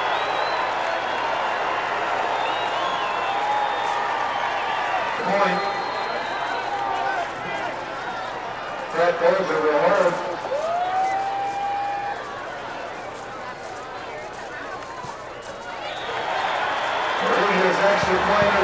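A crowd cheers and shouts outdoors at a distance.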